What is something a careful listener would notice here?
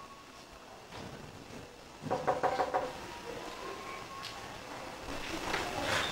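A woman knocks on a door.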